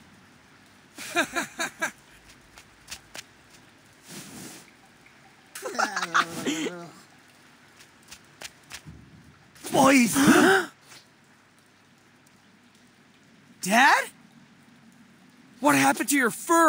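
A young man's cartoonish voice talks with excitement.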